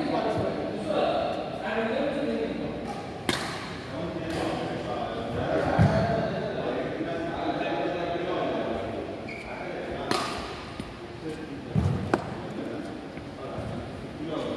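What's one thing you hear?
A racket strikes a shuttlecock with sharp pops.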